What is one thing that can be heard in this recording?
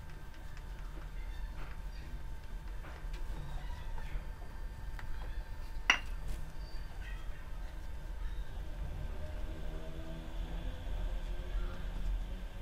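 A spatula stirs and scrapes thick batter in a bowl.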